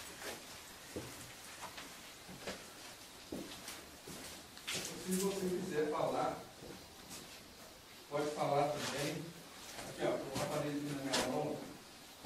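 Footsteps shuffle on a hard floor.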